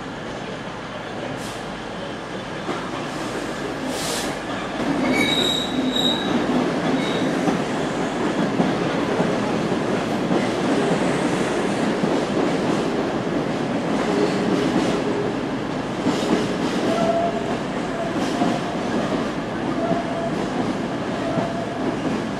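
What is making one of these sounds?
A train rumbles and clatters along the tracks, close by.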